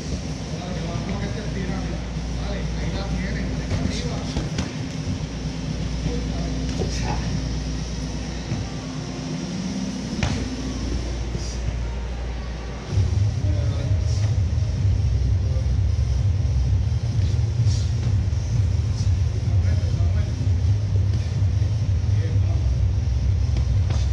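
Gloved punches thud and smack in a large echoing hall.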